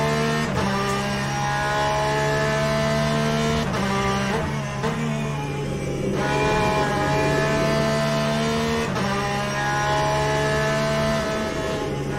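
A racing car engine roars steadily, its pitch climbing and dropping sharply with each gear change.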